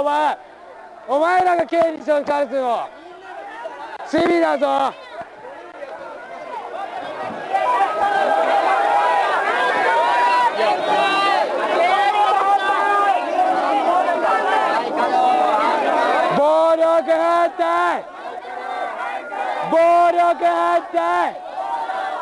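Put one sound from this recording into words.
A man shouts loudly close by, in bursts.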